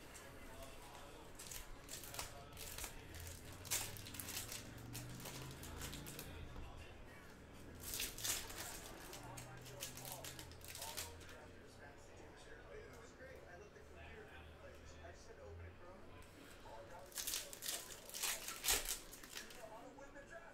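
Foil wrappers crinkle and rustle as packs are torn open.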